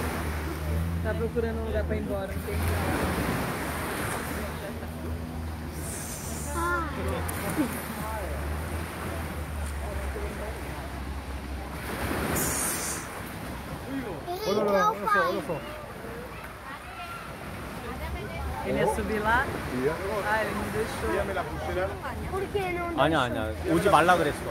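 Children and adults chatter and call out nearby outdoors.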